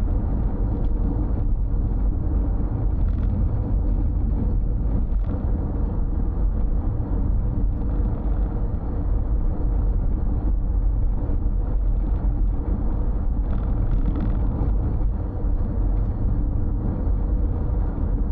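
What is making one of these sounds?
Tyres roll with a steady rumble on the road.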